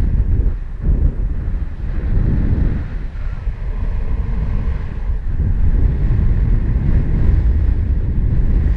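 Strong wind rushes and buffets steadily past a microphone high in the open air.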